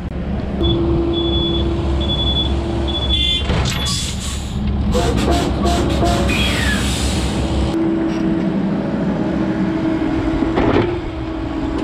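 A mini excavator's diesel engine rumbles and hums steadily close by.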